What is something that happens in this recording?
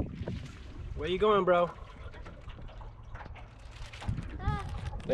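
Water laps gently against the side of a small boat.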